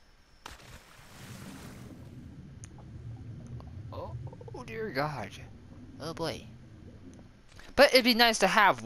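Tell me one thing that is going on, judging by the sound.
Muffled underwater rumbling churns steadily.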